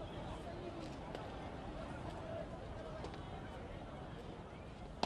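A crowd of women chatters and laughs nearby.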